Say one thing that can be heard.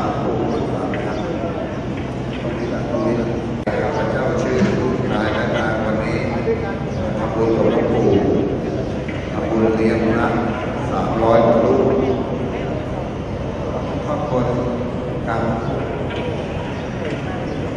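A crowd of people murmur in the background.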